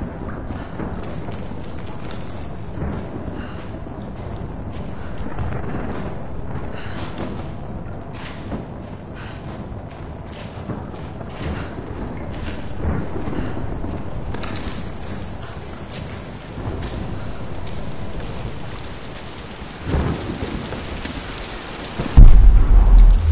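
Footsteps crunch over dry debris.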